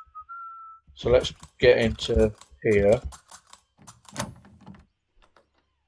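A lock pick clicks and scrapes inside a door lock.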